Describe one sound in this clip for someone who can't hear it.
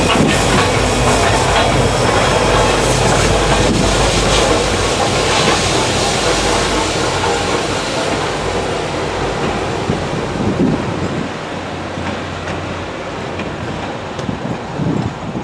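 Train cars rumble and clatter along the tracks, slowly fading.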